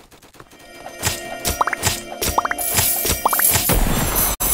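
A sword strikes with quick, sharp hits.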